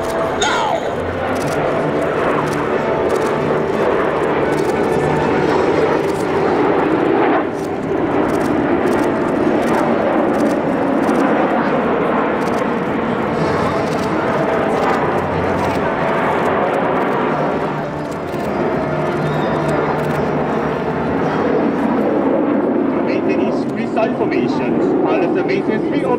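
Jet engines roar loudly overhead.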